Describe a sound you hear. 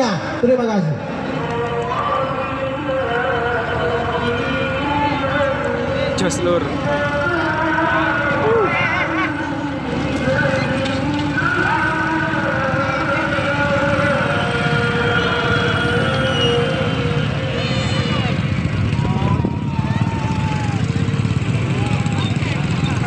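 A crowd shouts and cheers outdoors at a distance.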